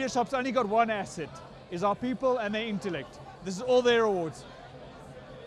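A young man speaks cheerfully into a microphone.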